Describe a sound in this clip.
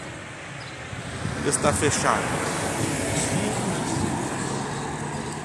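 A car drives past on a road nearby.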